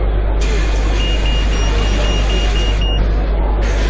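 A door warning chime beeps rapidly.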